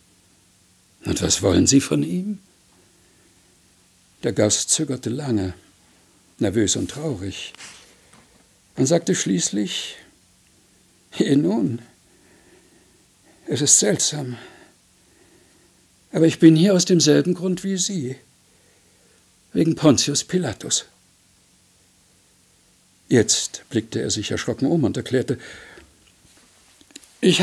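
An elderly man reads aloud slowly into a microphone, pausing between phrases.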